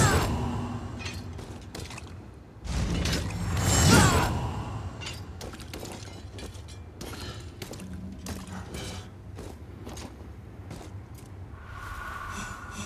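Swords clang and footsteps thud from a game over a loudspeaker.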